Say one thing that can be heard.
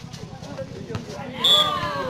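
A volleyball is smacked hard.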